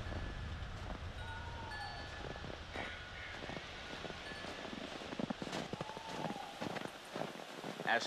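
Footsteps crunch slowly through snow.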